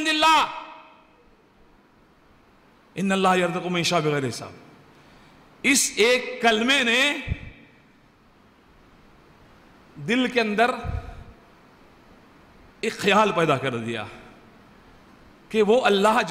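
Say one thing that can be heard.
An elderly man speaks with animation through a microphone, in bursts with pauses.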